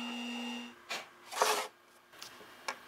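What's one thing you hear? A mallet knocks on a wooden block.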